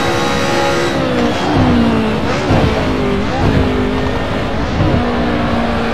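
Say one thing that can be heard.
A racing car engine drops in pitch and burbles as the car slows for a corner.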